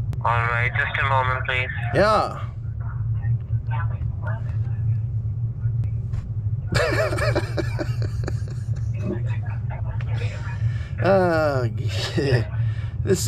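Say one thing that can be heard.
A middle-aged man talks close by with animation.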